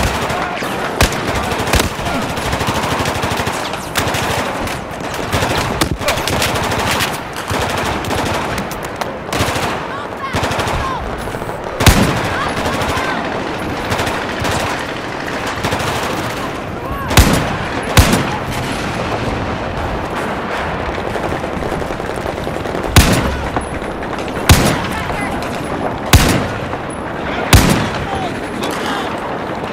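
Gunfire and explosions rumble steadily in the distance.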